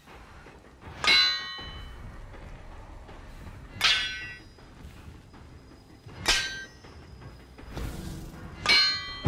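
A metal weapon strikes with a sharp ringing clang.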